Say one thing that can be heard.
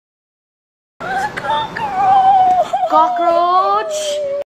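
A young woman wails and sobs close by.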